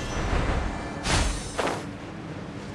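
A sharp magical whoosh bursts out.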